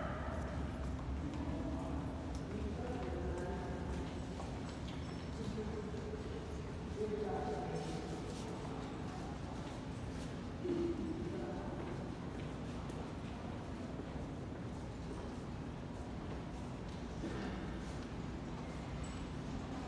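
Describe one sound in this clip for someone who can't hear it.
A subway train rumbles steadily along its tracks, heard from inside a carriage.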